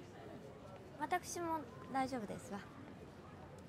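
A young woman answers calmly and softly, close by.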